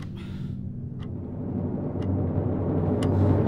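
A wall clock ticks steadily.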